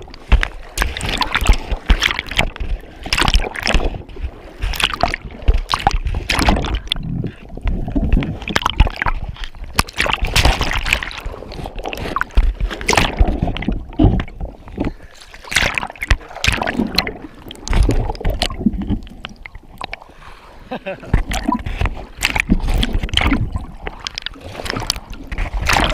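Water sloshes and bubbles around, heard muffled from underwater.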